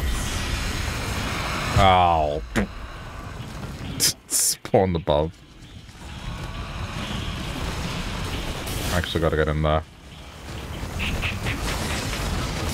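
Video game effects blast and whoosh during a fight.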